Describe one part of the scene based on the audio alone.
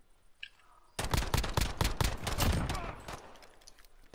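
Rapid gunshots fire in a burst close by.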